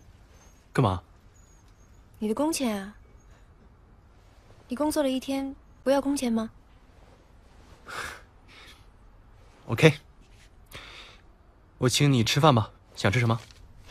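A young man speaks softly and warmly, close by.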